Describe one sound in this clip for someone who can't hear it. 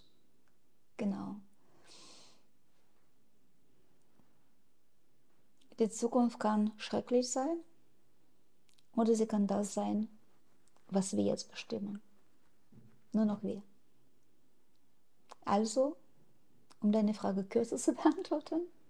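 An older woman speaks calmly and closely into a microphone, with pauses between phrases.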